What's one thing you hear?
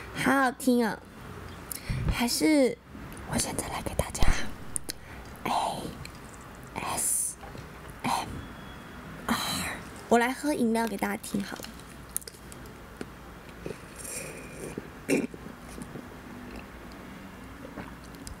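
A young woman sips loudly through a straw close to a microphone.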